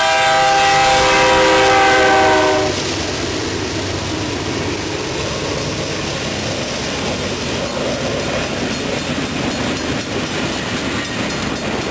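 A freight train rumbles past.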